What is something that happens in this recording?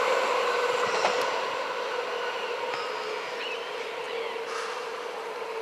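Another train hums as it approaches from a distance.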